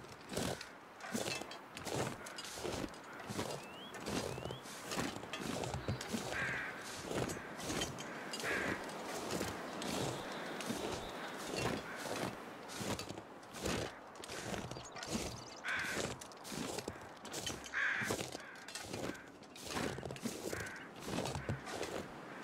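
Footsteps crunch through deep snow at a steady pace.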